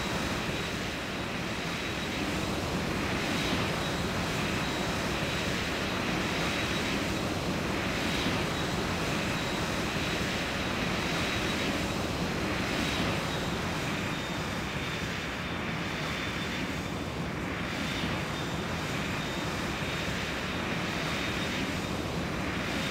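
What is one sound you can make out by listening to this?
A twin-engine jet airliner's engines whine as it taxis.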